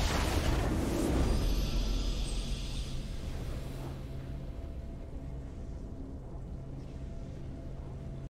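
Triumphant game music swells and plays steadily.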